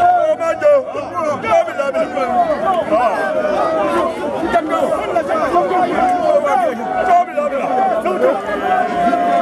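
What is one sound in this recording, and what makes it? A crowd of men and women sings and chants loudly outdoors.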